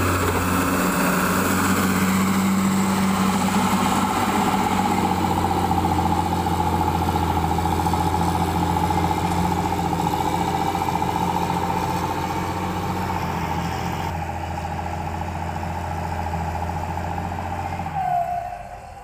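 A diesel motor grader engine drones as the grader drives away.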